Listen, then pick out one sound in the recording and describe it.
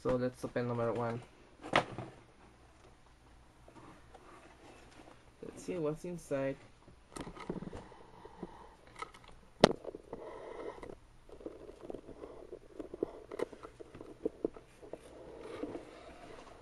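A cardboard package is handled, with soft rustling and occasional taps.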